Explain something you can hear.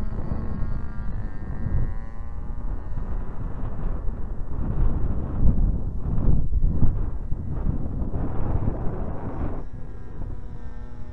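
Wind rushes and buffets loudly past.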